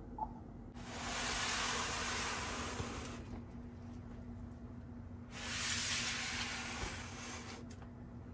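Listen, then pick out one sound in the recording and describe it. A plastic-wrapped box rustles as it is handled.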